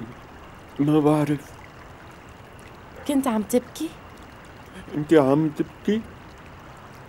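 A young man speaks close by in a strained, pleading voice.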